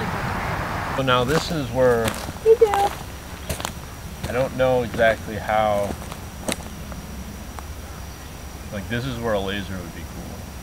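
A young woman talks outdoors.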